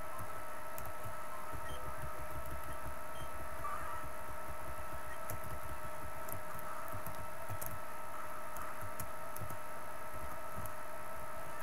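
Short electronic blips sound now and then.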